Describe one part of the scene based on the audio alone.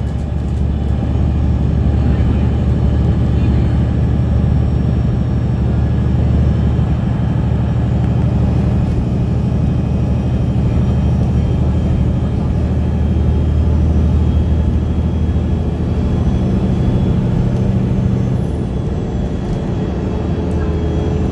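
A vehicle's engine hums steadily from inside as it drives along a road.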